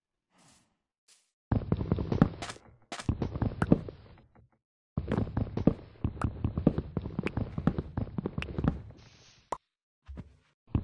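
Blocky wooden thuds knock repeatedly as an axe chops at a tree.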